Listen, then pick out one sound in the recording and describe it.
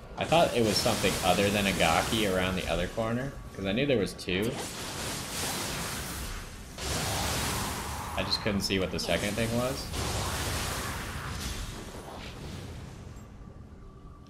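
Swords clash and ring in a fast fight.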